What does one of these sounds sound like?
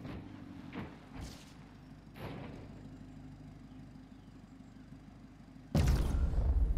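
A car engine idles quietly.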